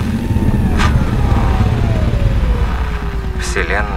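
A spacecraft engine rumbles deeply and steadily.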